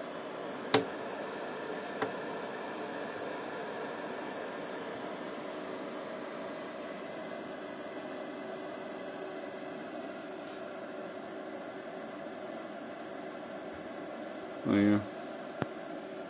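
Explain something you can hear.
An electrical power supply hums steadily.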